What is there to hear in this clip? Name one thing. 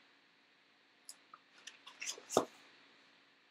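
Book pages rustle as a page is turned.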